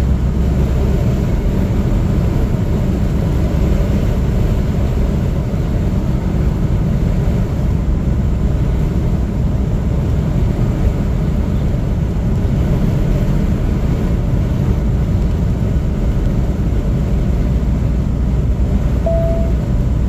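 Tyres roll steadily on the road, heard from inside a car.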